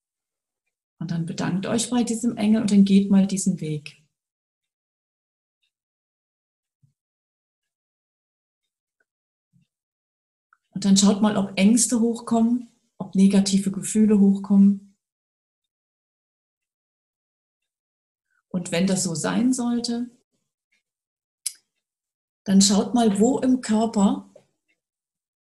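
An adult speaks calmly in short phrases over an online call, with long silent pauses between them.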